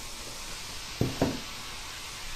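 A cardboard box knocks down on a wooden table.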